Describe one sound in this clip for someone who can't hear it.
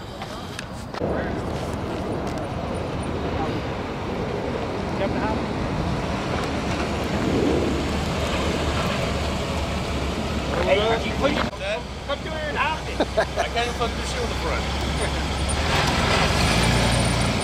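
A car engine rumbles as a car drives slowly past up close.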